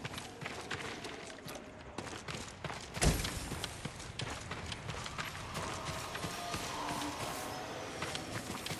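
Footsteps patter quickly on wet ground.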